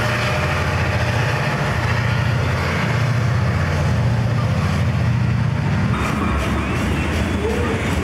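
Freight car wheels clatter and clack over the rails.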